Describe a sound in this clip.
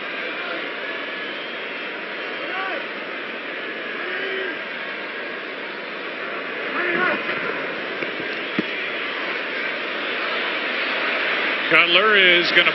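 A large stadium crowd murmurs and roars steadily outdoors.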